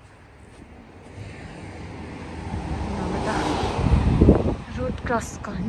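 A pickup truck drives past close by.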